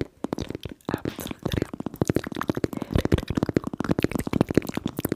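Fingernails tap on a plastic toy close to a microphone.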